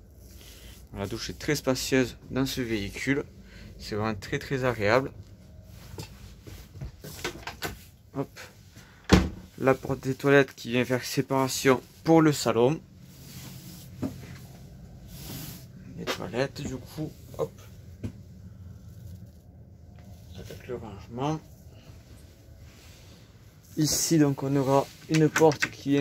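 A man talks calmly and close by, pausing now and then.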